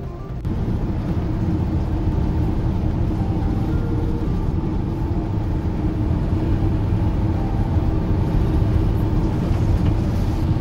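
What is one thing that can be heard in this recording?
Tyres roll and rumble on a wet road.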